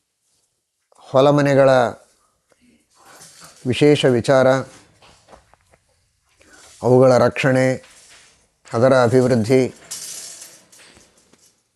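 A man chants in a slow, sing-song voice close to a microphone, in short phrases with pauses.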